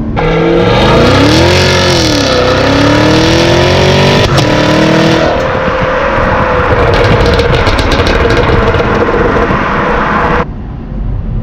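A car engine roars loudly through its exhaust, revving up and down.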